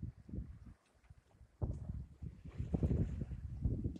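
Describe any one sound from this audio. Waves splash against a sailing boat's hull.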